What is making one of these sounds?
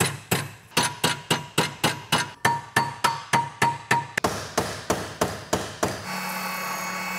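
A hammer strikes metal in quick, steady blows.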